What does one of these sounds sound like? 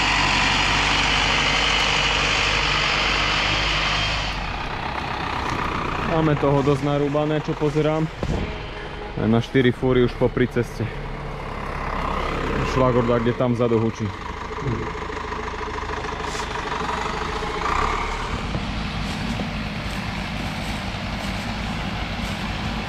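A tractor engine rumbles close by, then goes on more quietly as it gets further away.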